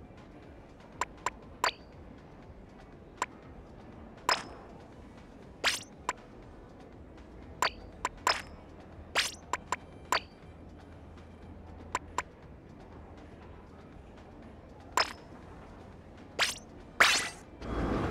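Short menu clicks and blips sound one after another.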